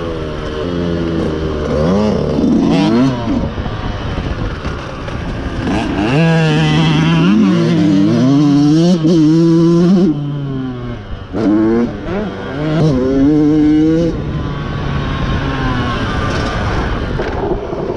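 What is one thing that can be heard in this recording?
A dirt bike engine revs hard up and down close by.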